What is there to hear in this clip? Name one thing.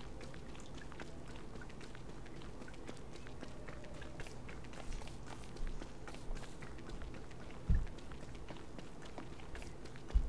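Footsteps patter softly on the ground.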